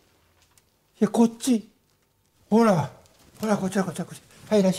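A man speaks in short, calm phrases nearby.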